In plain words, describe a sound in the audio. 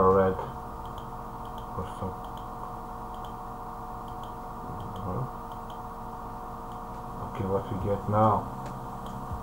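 A man speaks briefly and casually into a close microphone.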